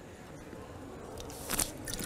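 A woman sips from a bottle.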